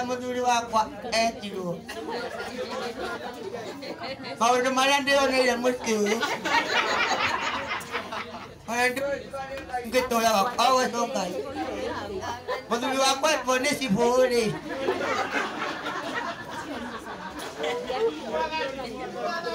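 A crowd of people murmurs and chatters in the background.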